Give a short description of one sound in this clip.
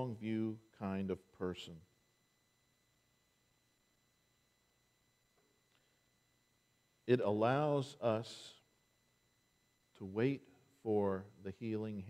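An elderly man preaches, with pauses between phrases.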